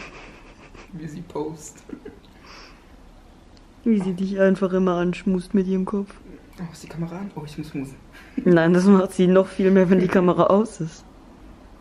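A cat meows loudly and repeatedly close by.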